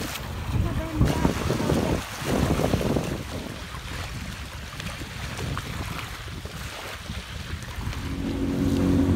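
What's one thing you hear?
Small waves lap on a shore.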